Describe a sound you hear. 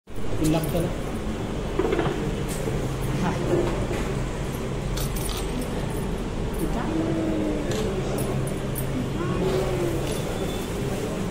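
A baby babbles and coos.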